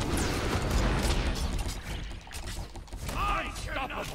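Magic blasts whoosh and crackle in quick bursts.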